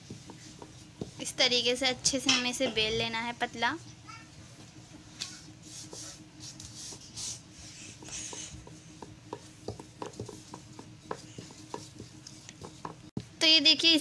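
A wooden rolling pin rolls over dough with soft taps and thuds.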